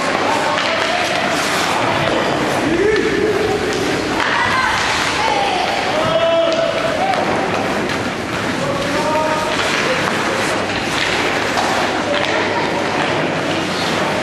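Ice skates scrape and swish across the ice in an echoing rink.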